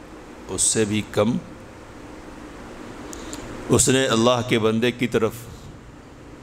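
A man speaks calmly into a close headset microphone, in short phrases with pauses.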